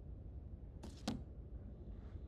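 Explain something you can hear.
A small book is set down on a table with a soft thud.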